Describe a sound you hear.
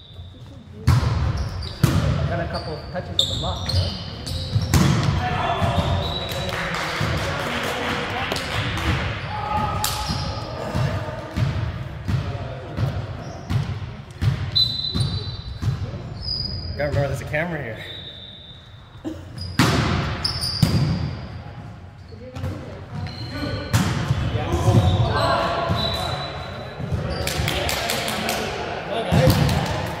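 A volleyball is struck with sharp slaps and thuds.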